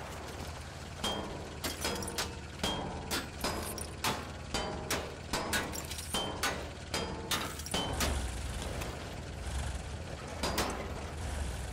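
A metal tool bangs repeatedly against a steel vehicle hull.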